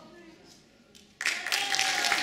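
A group of women sings together into microphones.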